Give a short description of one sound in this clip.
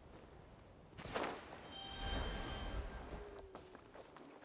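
A burst of flame whooshes.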